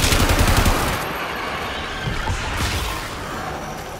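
An energy blast whooshes loudly.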